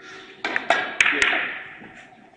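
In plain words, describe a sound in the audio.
Billiard balls click sharply against each other.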